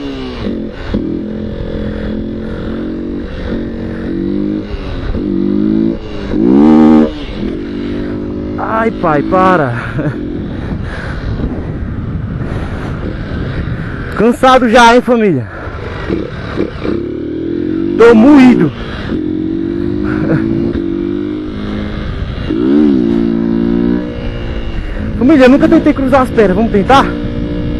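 A small motorcycle engine revs up and down while riding.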